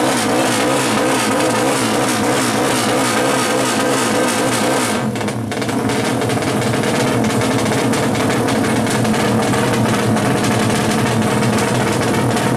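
A racing motorcycle engine revs loudly and roughly up close.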